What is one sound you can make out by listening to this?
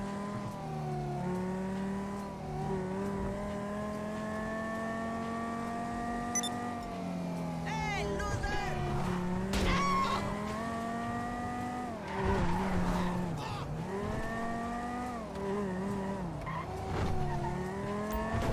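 A car engine hums steadily and rises and falls in pitch as it shifts gears.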